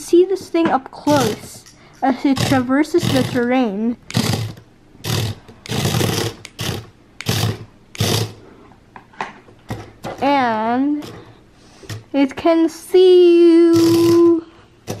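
A small toy robot bug buzzes and rattles as it scuttles across a hard surface.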